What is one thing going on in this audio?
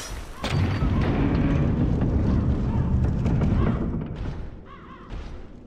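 A heavy wooden door creaks and swings open.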